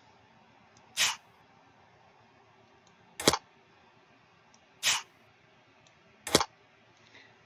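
A card snaps into place with a short click, several times.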